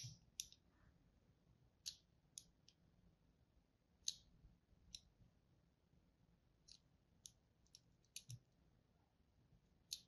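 A needle scratches and crackles across a soap bar in short, crisp bursts.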